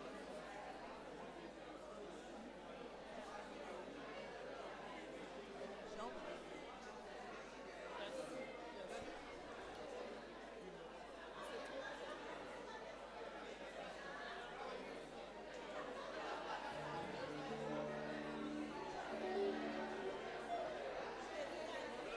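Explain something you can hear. A crowd of adults chats indoors.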